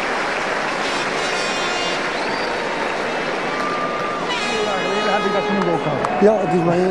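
A large stadium crowd murmurs and cheers in the open air.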